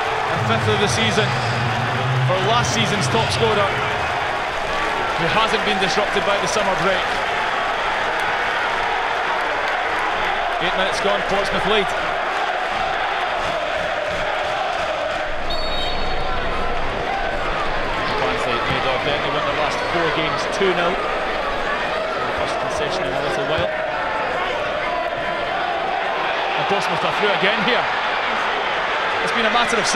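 A stadium crowd roars and chants steadily outdoors.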